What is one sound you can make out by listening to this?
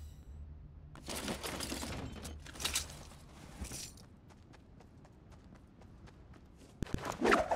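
Footsteps thud quickly on the ground.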